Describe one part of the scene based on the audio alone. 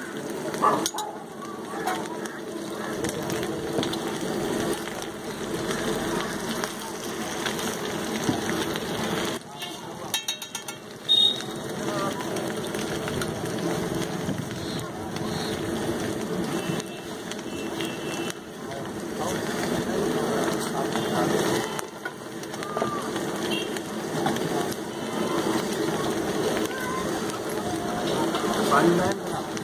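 Men chatter nearby amid a busy outdoor crowd.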